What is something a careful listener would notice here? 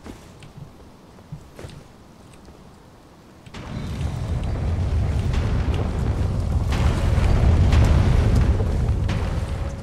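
Armoured footsteps clatter on stone.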